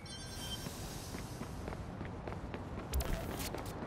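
Quick footsteps run along pavement.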